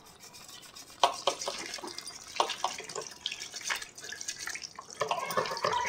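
Water trickles and splashes into a basin.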